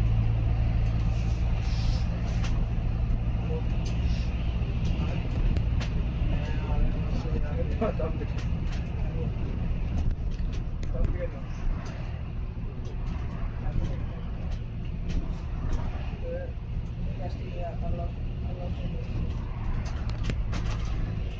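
A bus engine hums and rumbles steadily.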